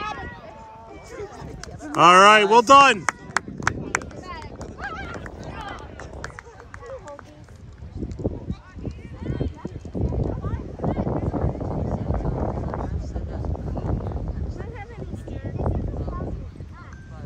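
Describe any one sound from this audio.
Young players call out to each other across an open playing field.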